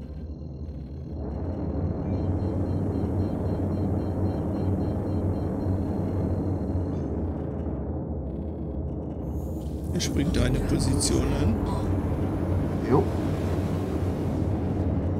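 A spacecraft engine hums steadily and low.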